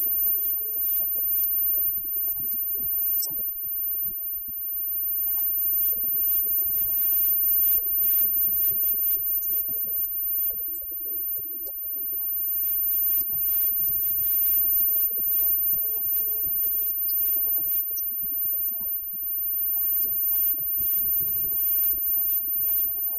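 A live rock band plays loudly in an echoing room.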